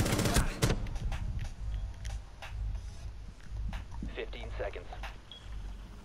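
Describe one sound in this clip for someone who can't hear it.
A magazine clicks into a rifle during a reload.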